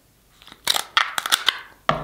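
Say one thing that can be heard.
Scissors snip through crab shells.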